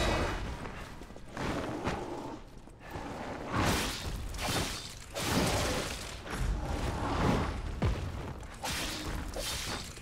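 Heavy blows thud on the ground.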